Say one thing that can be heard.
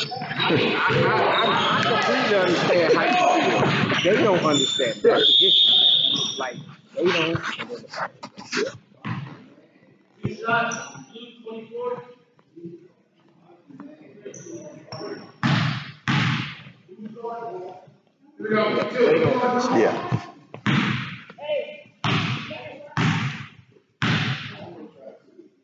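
A crowd of spectators chatters and cheers loudly in a large echoing gym.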